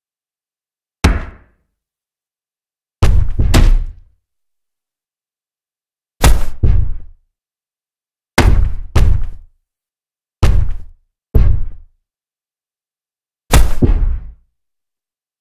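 Boxing gloves thud hard in quick punches.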